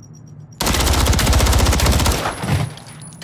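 A gun fires in a rapid burst, close by.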